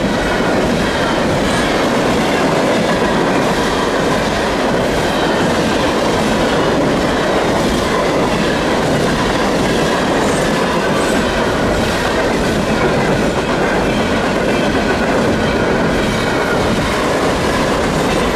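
A freight train of gondola cars rolls by with wheels rumbling and clacking on the rails.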